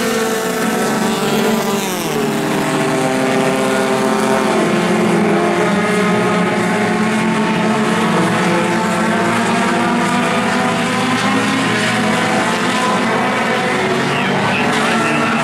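A pack of stock cars races at full throttle around a dirt oval, engines roaring and droning.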